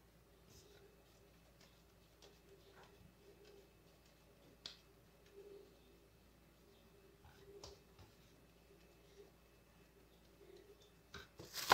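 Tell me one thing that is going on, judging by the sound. Hands pat and shape soft dough.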